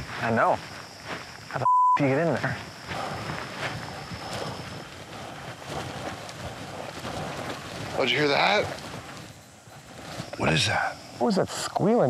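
A man speaks in a low, hushed voice close by.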